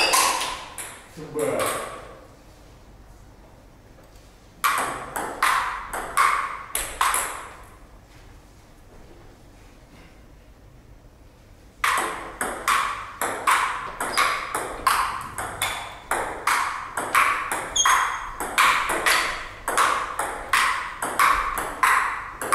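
A table tennis ball clicks back and forth against paddles and the table in quick rallies.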